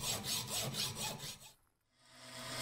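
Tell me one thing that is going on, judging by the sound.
A hacksaw cuts through metal in quick strokes.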